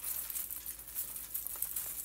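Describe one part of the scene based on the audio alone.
Artificial pine branches rustle as hands bend them into place.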